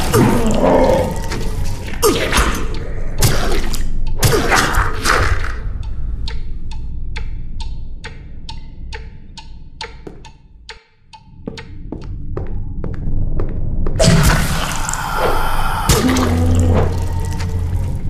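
A thick liquid bursts and splatters wetly.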